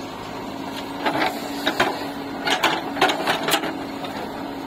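A digger bucket scrapes and crunches into the dirt.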